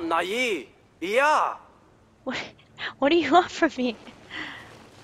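A young woman talks with animation into a headset microphone, close up.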